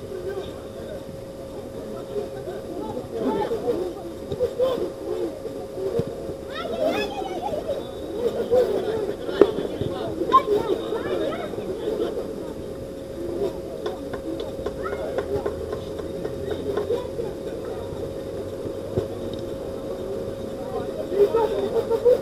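Young men shout and call to each other across an outdoor pitch.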